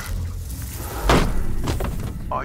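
A wooden table crashes and clatters across a hard floor.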